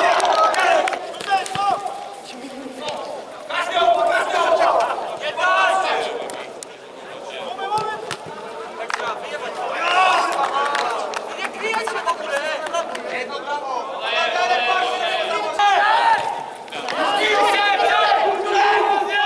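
A football is kicked with dull thuds in a large echoing hall.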